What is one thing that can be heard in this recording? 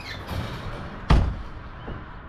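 A trailer door slams shut with a bang.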